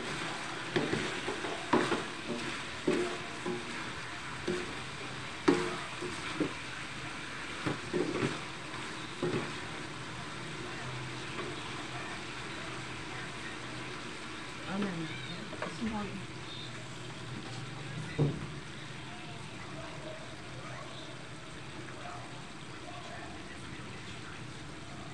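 Pork in a thick sauce sizzles and simmers in a wok.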